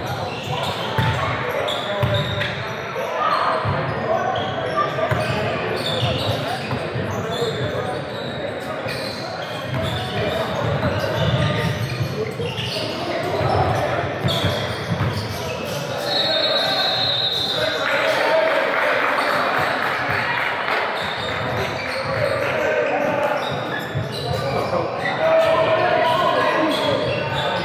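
A crowd of young players and spectators talks and shouts in a large echoing gym.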